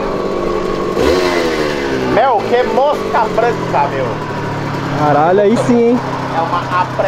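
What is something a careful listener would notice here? A motorcycle engine revs up sharply.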